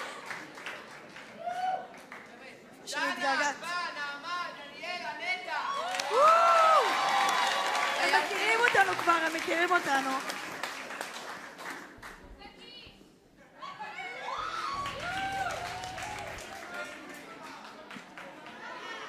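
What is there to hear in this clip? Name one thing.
A group of young singers sings together, heard from the audience.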